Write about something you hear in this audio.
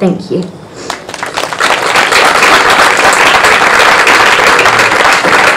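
An audience applauds steadily.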